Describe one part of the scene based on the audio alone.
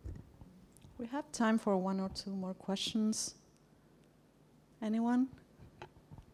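A woman speaks with animation through a microphone in a large room.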